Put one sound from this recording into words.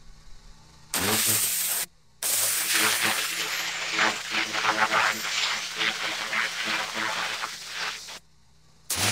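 A pressure washer sprays water with a loud, steady hiss.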